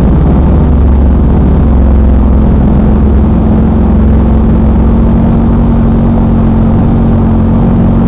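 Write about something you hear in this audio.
A tractor engine rumbles loudly and steadily up close.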